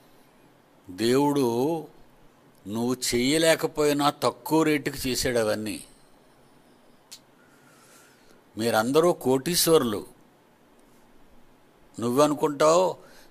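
An elderly man speaks slowly and calmly into a microphone, pausing often.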